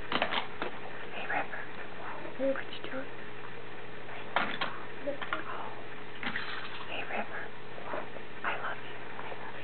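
Plastic toy bricks clatter and click as a small child rummages through them.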